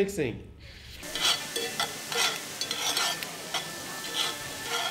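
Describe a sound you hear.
Metal spatulas scrape against a pan.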